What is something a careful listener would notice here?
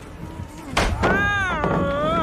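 A young woman cries out with animation, close to a microphone.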